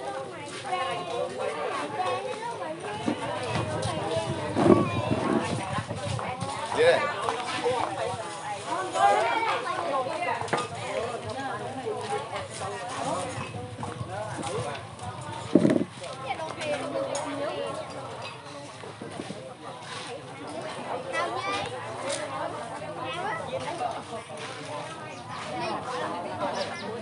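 Dishes and glasses clink on tables.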